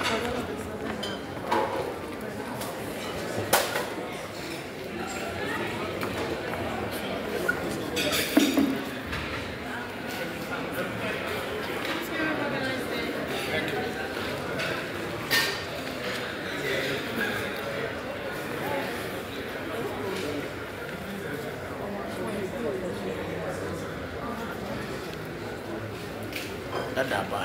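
A crowd of men and women chatter indoors.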